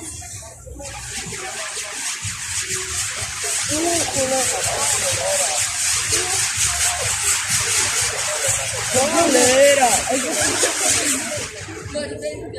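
A firework fountain hisses and crackles loudly, spraying sparks.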